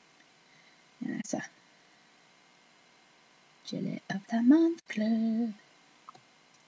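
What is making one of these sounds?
A woman speaks close to the microphone in a calm, chatty voice.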